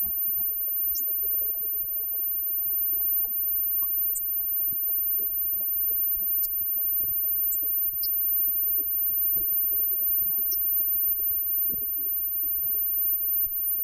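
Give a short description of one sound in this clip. Electric guitars play loudly over bass and drums, heard through a live sound system.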